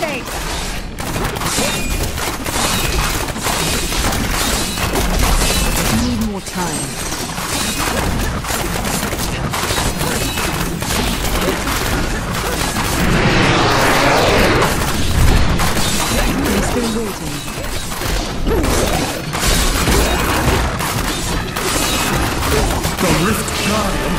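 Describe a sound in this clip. Explosions boom in heavy bursts.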